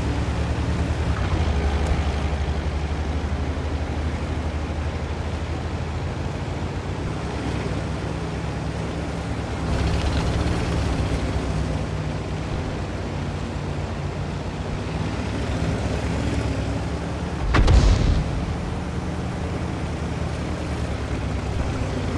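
A heavy tank's engine rumbles as it drives.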